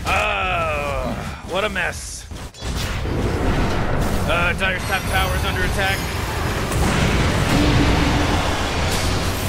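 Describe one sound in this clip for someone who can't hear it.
Game spells blast and crackle in a battle.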